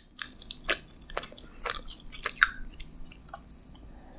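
A young woman chews close to a microphone with crisp crunching.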